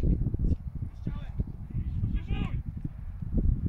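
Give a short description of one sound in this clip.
Players shout in the distance across an open field.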